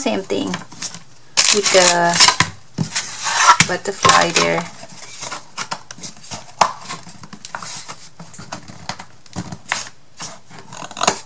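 Thin cardboard pieces tap and scrape as hands handle them.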